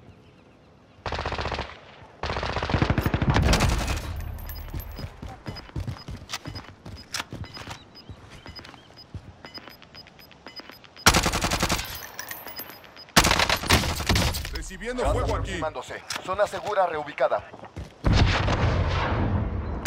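Rifle shots ring out in quick, loud bursts.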